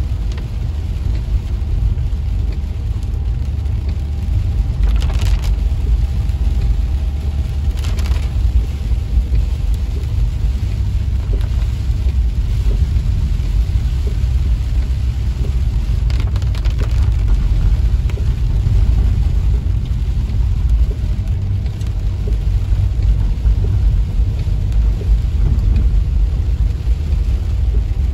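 Heavy rain pounds on a car's windshield and roof.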